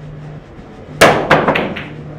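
A cue strikes a pool ball sharply.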